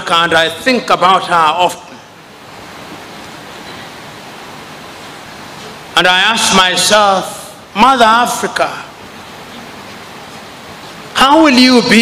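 A man speaks forcefully through a microphone in a large echoing hall, pausing between phrases.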